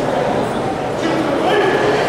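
A man shouts short commands loudly.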